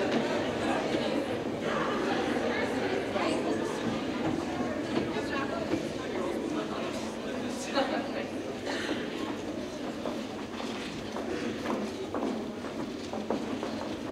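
Footsteps cross a wooden stage in a large hall.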